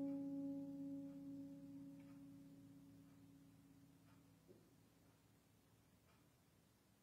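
Harp strings ring and slowly fade away.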